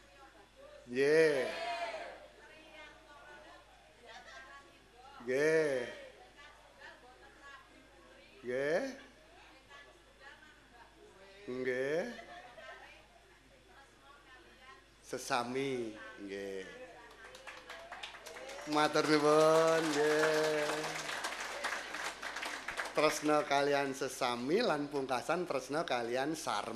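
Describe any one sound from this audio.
A woman sings through a loudspeaker, in drawn-out phrases with pauses between them.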